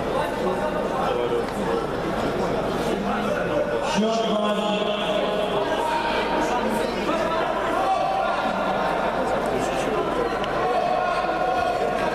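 A crowd of spectators talks and shouts in a large echoing hall.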